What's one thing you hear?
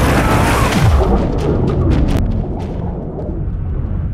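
Water gurgles and bubbles, heard muffled from below the surface.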